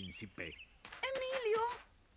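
A young woman whimpers through a gag.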